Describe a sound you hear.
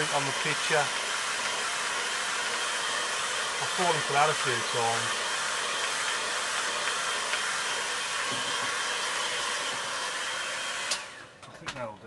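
A hair dryer blows with a loud, steady roar.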